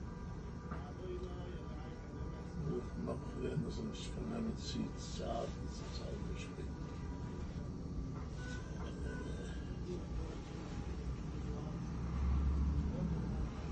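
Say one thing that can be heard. An elderly man speaks softly.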